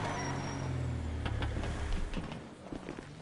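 A truck engine rumbles and then idles down.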